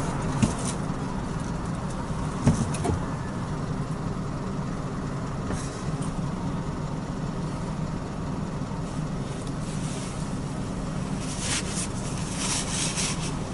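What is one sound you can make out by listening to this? A car engine hums steadily over tyre and road noise from inside the car.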